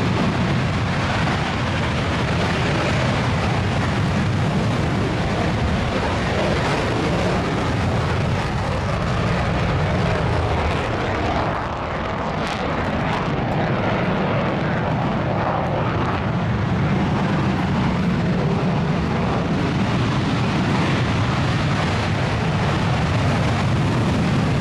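A jet engine roars loudly as a fighter jet takes off and climbs.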